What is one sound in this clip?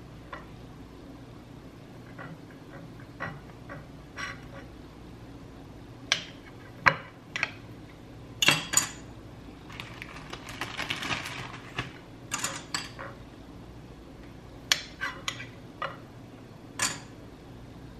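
A knife cuts through bread and taps against a plate.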